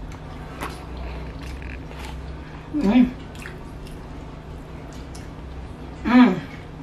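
Crispy fried chicken crunches as a woman bites and chews.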